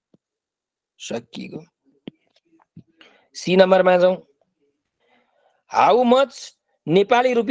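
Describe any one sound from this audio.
A young man speaks calmly through a microphone, explaining in short phrases.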